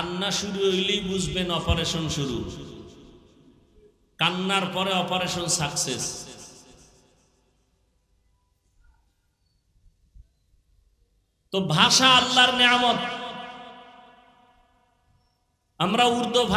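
A man preaches with feeling into a microphone, his voice ringing with a long echo, in bursts with pauses between.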